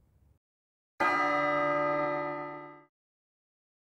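A bell chimes once and rings out.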